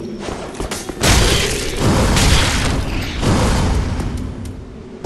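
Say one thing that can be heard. Swords clash with heavy metallic blows.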